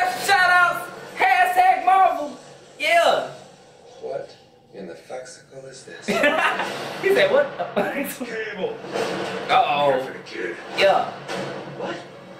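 A young man laughs softly close by.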